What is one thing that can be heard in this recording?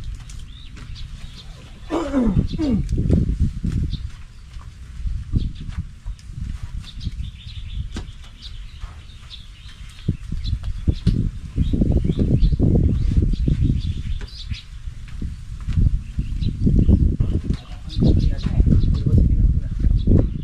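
Bundles of long bean stalks rustle as hands sort them.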